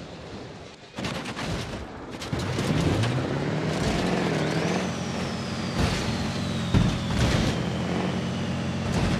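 A truck crashes and scrapes as it rolls over rough ground.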